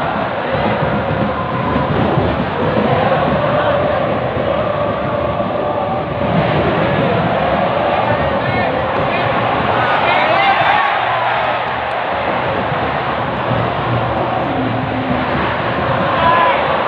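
A large stadium crowd chatters and cheers in an open echoing space.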